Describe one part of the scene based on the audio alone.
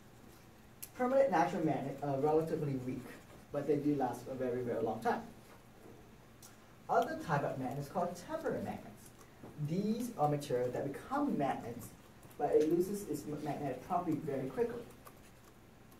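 A young man speaks calmly, as if lecturing.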